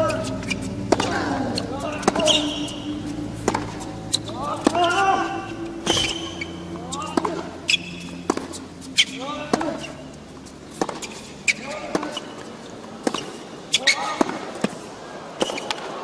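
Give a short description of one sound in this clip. Tennis players grunt loudly as they hit the ball.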